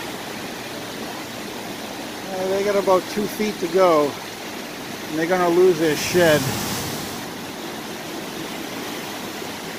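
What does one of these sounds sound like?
Floodwater rushes and roars steadily outdoors.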